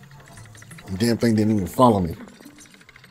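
A man speaks loudly and animatedly close to a microphone.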